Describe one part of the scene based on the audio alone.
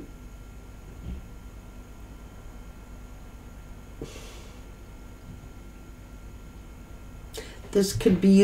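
Cards shuffle softly in a woman's hands.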